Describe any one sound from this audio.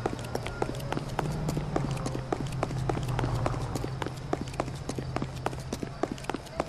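Hard shoes tap quickly on a pavement as a man runs.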